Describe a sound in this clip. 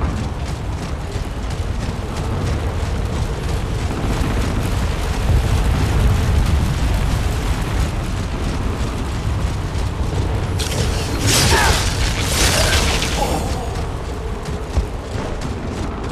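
Heavy metal footsteps clank steadily.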